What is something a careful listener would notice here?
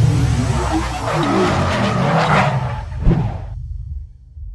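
A tyre spins and screeches against the ground.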